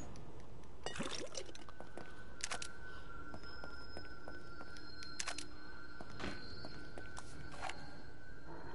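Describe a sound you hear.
Footsteps tap on a hard floor in a quiet, echoing space.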